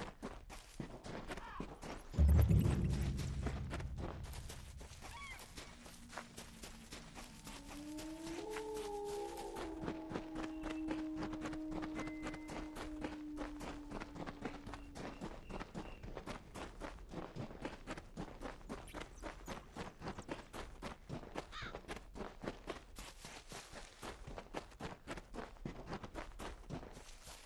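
Armoured footsteps thud quickly and steadily on a dirt path.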